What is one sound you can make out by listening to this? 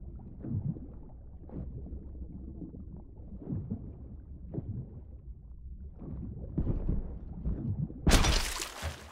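Muffled water swirls and bubbles as a swimmer moves underwater.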